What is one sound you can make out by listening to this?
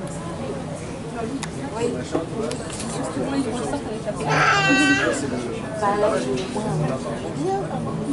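A crowd of people chatters loudly close by.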